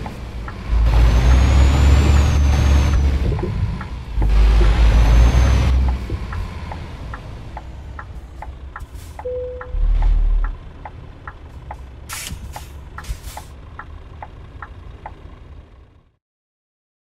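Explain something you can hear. A truck engine rumbles and revs loudly, then idles.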